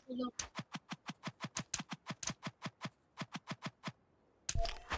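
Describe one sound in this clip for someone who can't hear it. Rapid, sharp hits of a sword strike in quick succession.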